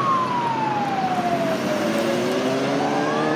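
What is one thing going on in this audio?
An ambulance siren passes close by, its pitch falling as it goes.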